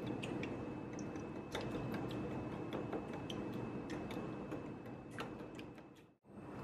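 A whisk clicks rapidly against a bowl, beating eggs.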